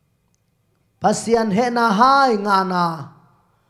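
A young man speaks with feeling into a microphone.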